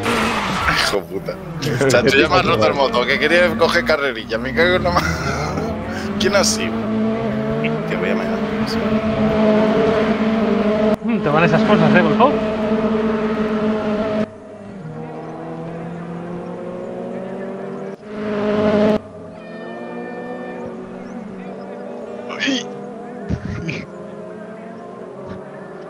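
Racing car engines roar and whine as they accelerate and shift gears.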